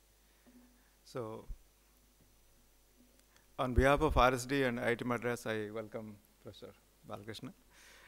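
A man speaks through a microphone in a large hall.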